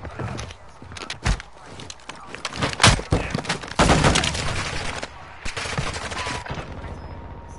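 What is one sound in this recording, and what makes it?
Gunshots crack in quick bursts nearby.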